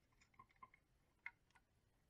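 A screwdriver turns a small screw.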